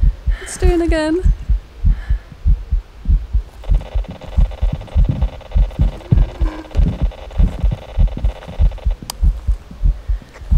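Footsteps crunch steadily over the ground.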